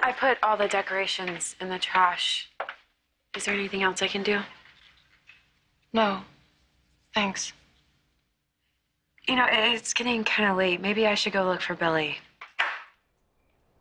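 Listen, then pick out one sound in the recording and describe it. A young woman speaks tensely nearby.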